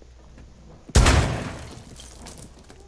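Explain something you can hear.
A loud blast breaks through a wall.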